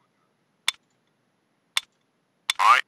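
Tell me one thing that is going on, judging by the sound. A menu button clicks.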